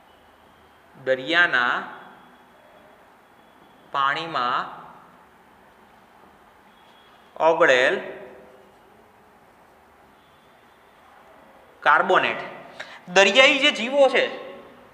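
A man speaks in short bursts, explaining clearly and close by.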